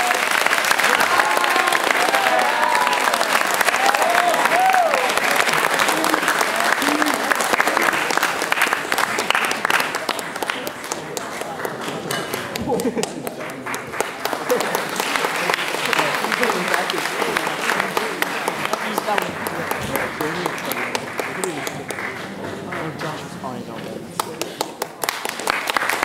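A large choir sings in an echoing hall.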